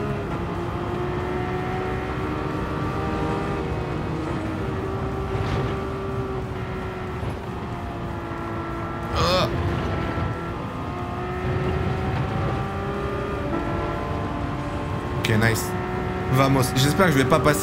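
A race car engine roars steadily, shifting gears as it speeds along.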